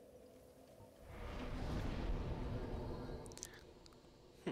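A deep rushing whoosh swells and fades.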